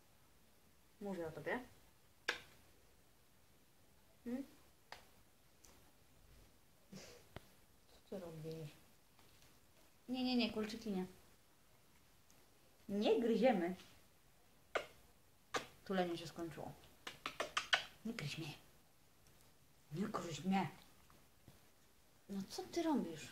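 A young woman speaks softly and playfully, close by.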